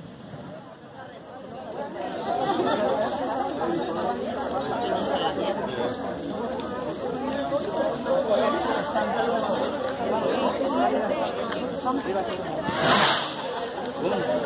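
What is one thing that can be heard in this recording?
Footsteps shuffle on a cobbled street.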